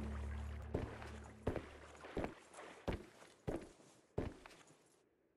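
Footsteps knock steadily on a metal floor.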